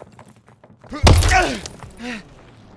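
A heavy wooden door thuds open.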